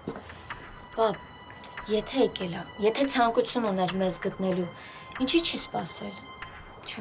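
A young woman speaks tensely, close by.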